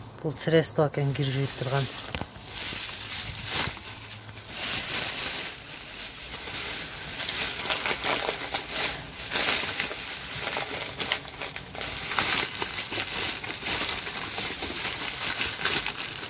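Plastic shopping bags rustle and crinkle close by.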